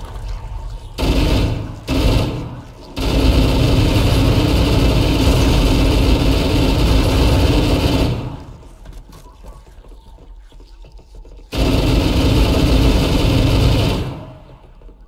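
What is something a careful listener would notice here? A rifle fires rapid bursts with loud bangs.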